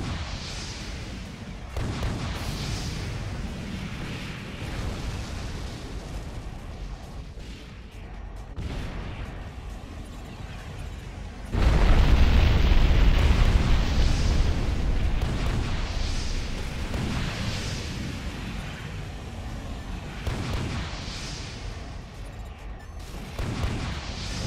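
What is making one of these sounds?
Thrusters roar steadily.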